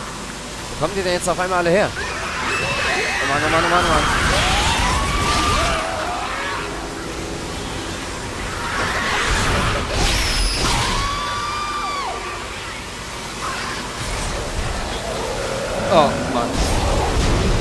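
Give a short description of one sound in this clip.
A creature shrieks and screeches.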